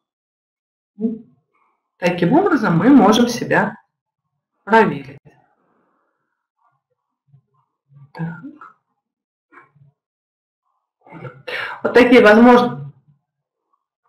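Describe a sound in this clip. A woman speaks calmly into a microphone over an online call, with pauses.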